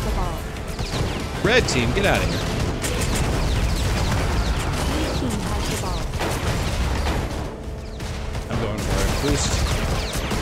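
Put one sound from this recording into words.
Gunfire and explosions from a video game crack and boom.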